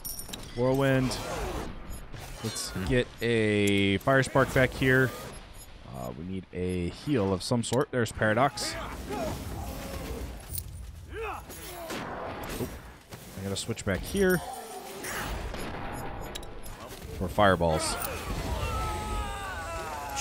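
Magic spells burst and crackle during a fight.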